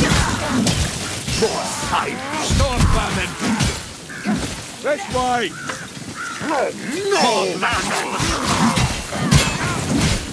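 A heavy blade hacks into flesh with wet thuds.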